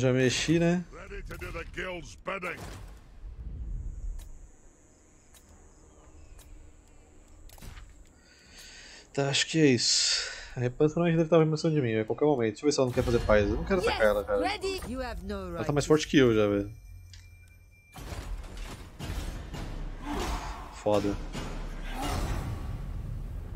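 A young man talks with animation into a nearby microphone.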